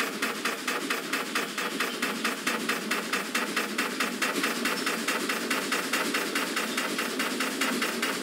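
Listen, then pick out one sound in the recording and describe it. A steam locomotive chuffs rapidly and steadily.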